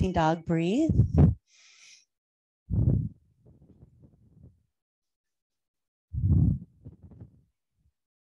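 A woman speaks calmly and slowly, close to a microphone.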